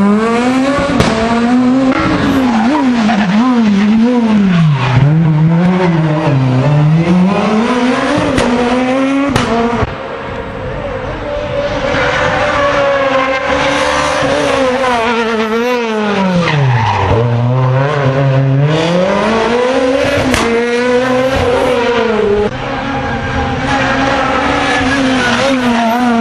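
A rally car engine revs hard close by, its pitch rising and falling with each gear change.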